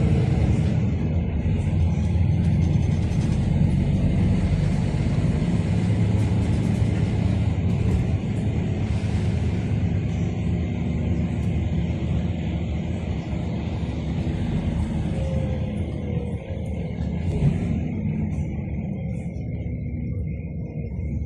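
Rain patters on a car window.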